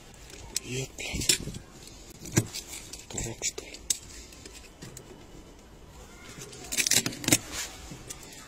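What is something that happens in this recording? A knife blade scrapes and clicks against window glass.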